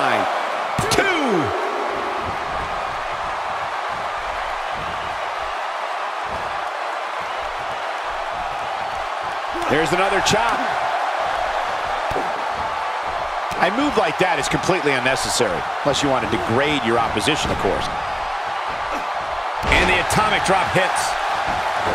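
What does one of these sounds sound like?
Wrestlers' bodies slam hard onto the ring mat.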